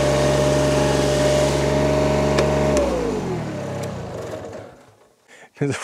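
A ride-on mower engine idles steadily, then winds down and stops.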